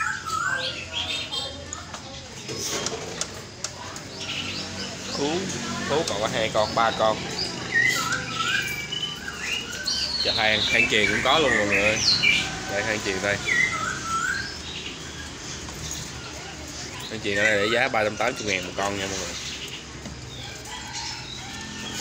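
Birds chirp and warble all around.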